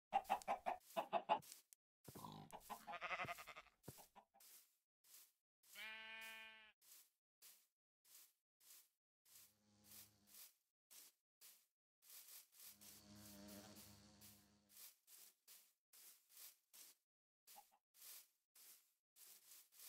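Footsteps fall on grass.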